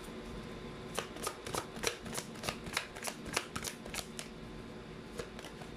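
Cards are shuffled with quick, crisp flicks.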